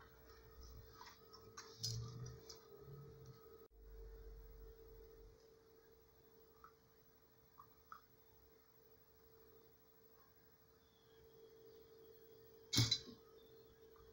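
Hands handle small metal parts and wires with light clicks and knocks.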